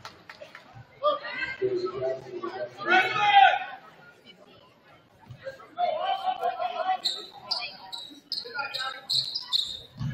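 Spectators in a gym call out and cheer.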